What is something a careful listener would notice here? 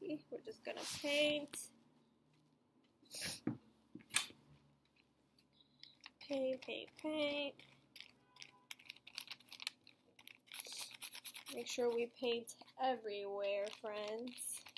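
A paintbrush dabs and scrubs paint on a paper bag.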